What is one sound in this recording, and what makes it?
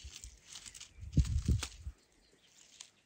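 Leafy plants rustle as hands pick through them.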